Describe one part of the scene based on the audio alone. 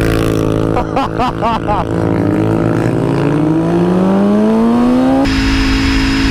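A motorcycle engine revs and rises in pitch as the bike speeds up.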